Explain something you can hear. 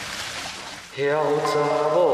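A young man speaks in a low, tense voice.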